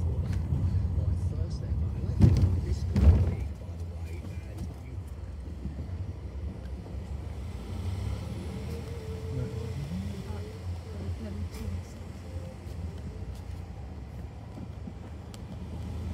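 A car engine hums low and steady from inside the car as it drives slowly.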